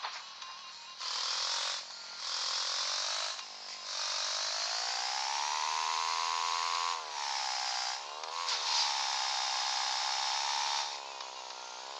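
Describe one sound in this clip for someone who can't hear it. A game motorbike engine revs and drones, rising and falling in pitch.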